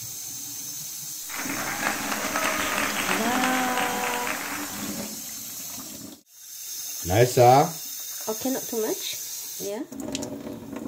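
Water runs from a tap into a pot.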